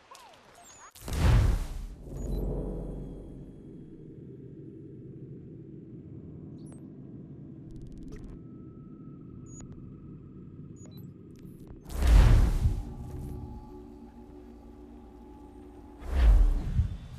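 A deep whoosh swells and fades.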